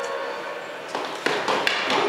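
Footsteps come down stone stairs.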